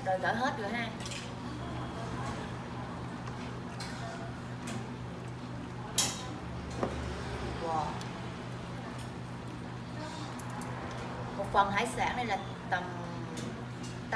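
Food sizzles and bubbles in a pan.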